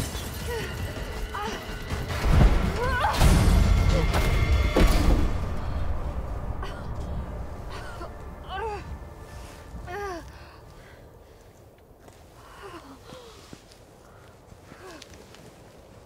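A young woman moans and gasps close by.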